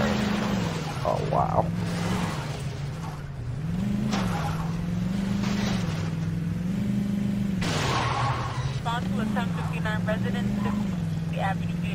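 Tyres skid and rumble over dirt.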